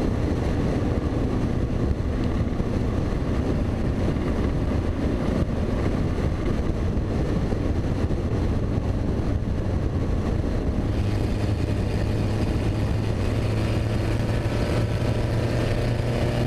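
A car engine roars loudly up close.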